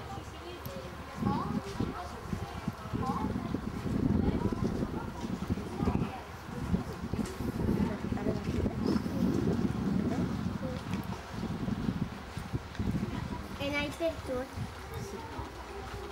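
A woman talks softly close by.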